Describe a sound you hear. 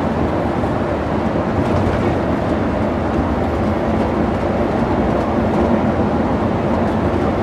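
A vehicle engine drones steadily from close by.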